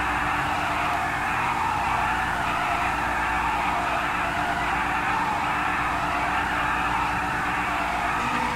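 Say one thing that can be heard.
Tyres screech continuously as a car drifts in circles.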